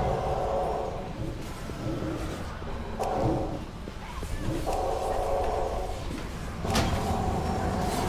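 Magic spells hum and crackle.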